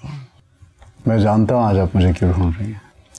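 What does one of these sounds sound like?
A man speaks quietly and calmly, close by.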